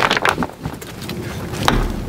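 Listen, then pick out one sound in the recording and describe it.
A wooden peg knocks into a wooden post.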